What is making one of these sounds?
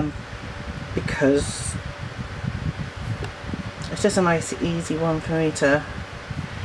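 A colored pencil scratches softly on paper.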